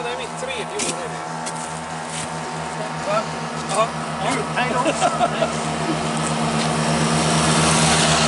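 A motorcycle engine approaches and grows louder.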